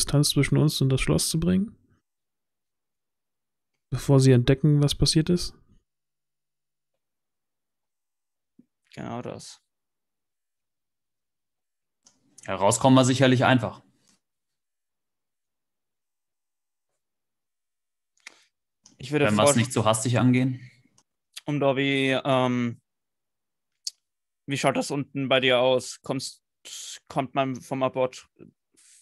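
Men speak in turns over an online call, with pauses in between.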